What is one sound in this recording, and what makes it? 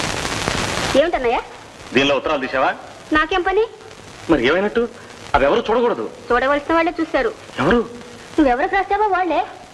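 A young woman speaks with emotion close by.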